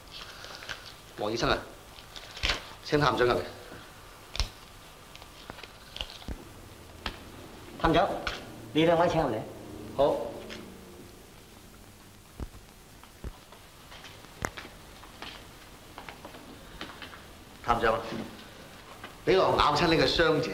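A man speaks calmly in short bursts.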